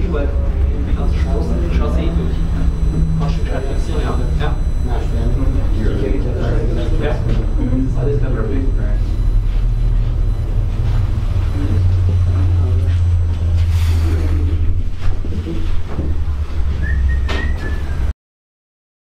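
A cable car cabin hums with a low, steady rumble as it glides down.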